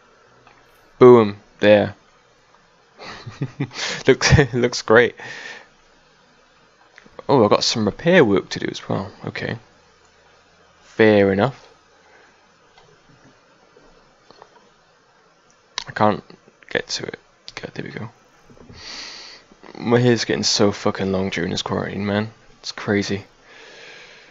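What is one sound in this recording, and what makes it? A man talks with animation into a headset microphone.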